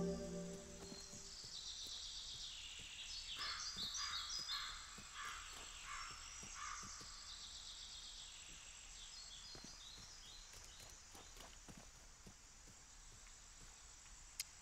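Footsteps tread steadily on a grassy path.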